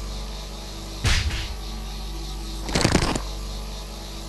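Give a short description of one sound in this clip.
Loud magic blasts burst twice.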